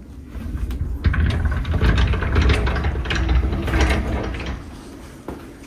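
A sliding metal door rattles as it is pulled open.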